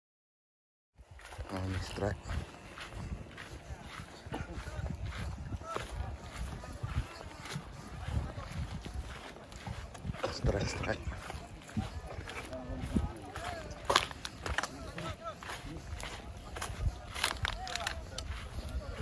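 A crowd of men talk and call out nearby.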